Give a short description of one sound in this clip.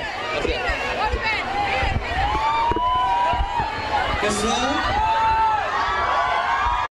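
A large crowd screams and shouts excitedly nearby.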